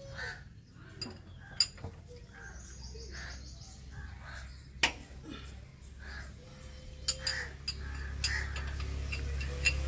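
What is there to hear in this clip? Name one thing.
A wrench clinks against metal bolts.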